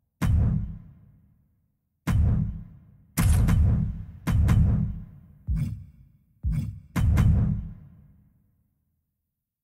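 Deep booming whooshes hit one after another, each fading quickly.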